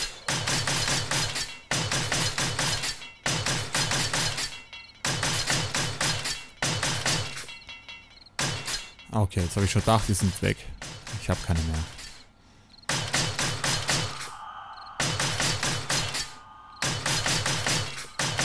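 A hammer taps rapidly on wood in repeated bursts.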